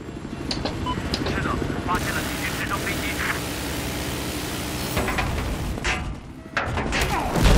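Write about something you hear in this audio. A helicopter's rotor and engine roar steadily.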